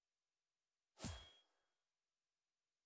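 A game menu gives a single short click as the selection changes.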